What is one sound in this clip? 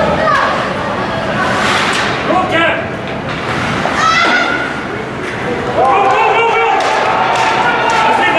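Ice skates scrape and swish across the ice.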